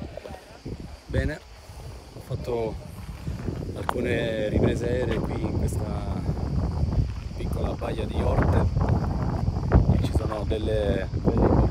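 A man talks with animation close to a handheld microphone.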